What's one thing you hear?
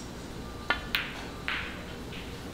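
Snooker balls knock together with a clack.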